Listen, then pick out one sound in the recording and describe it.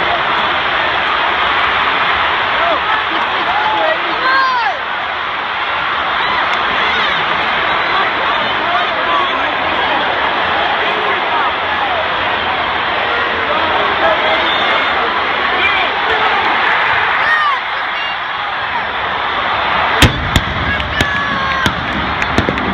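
Fans nearby shout and yell.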